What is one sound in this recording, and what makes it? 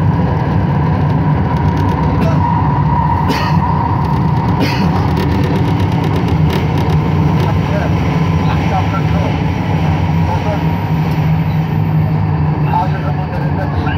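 A train rumbles steadily through a tunnel.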